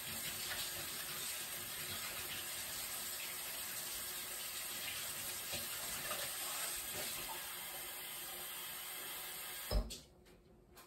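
Water runs from a tap into a sink.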